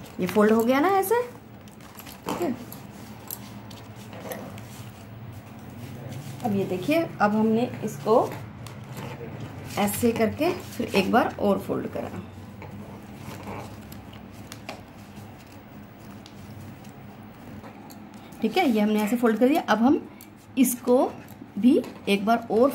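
Paper rustles and crinkles as it is folded and creased by hand.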